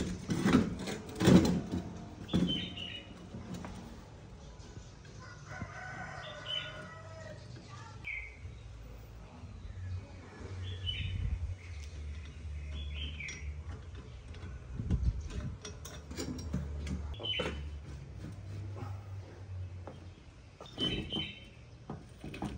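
Metal tools clank and scrape against a bicycle's handlebars.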